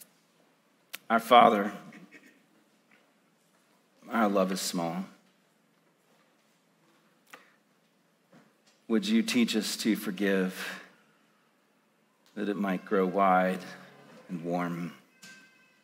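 A man speaks slowly and prayerfully into a microphone, with long pauses.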